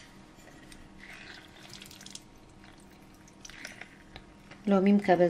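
Oil pours and trickles into a glass dish.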